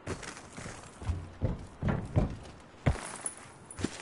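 Hands clatter against a metal fence.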